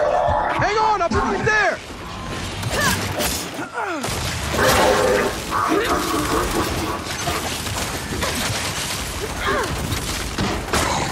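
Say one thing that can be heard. Gunfire cracks in sharp bursts.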